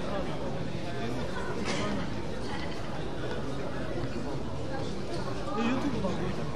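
A crowd of people chatter in a large echoing hall.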